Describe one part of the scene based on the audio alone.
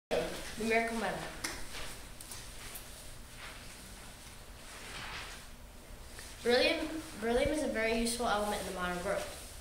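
A young boy speaks nearby in short bursts.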